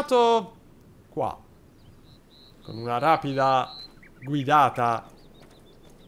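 A young man speaks with animation through a microphone, close by.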